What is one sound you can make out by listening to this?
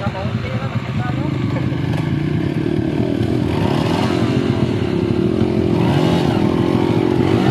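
A dirt bike engine revs up, growing louder.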